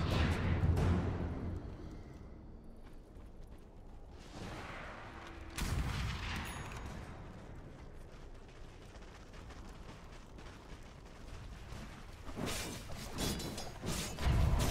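Magic spells whoosh and burst during a fight.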